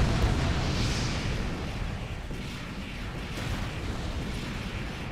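Jet thrusters roar steadily as a mech flies.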